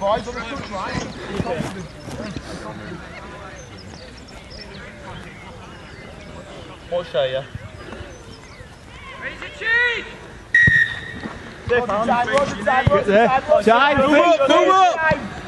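Young players shout to each other outdoors on an open field.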